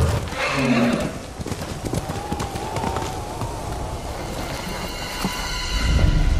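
Horse hooves thud on snow.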